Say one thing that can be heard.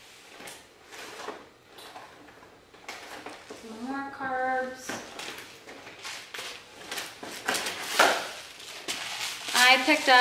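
Packages and boxes rustle and clatter.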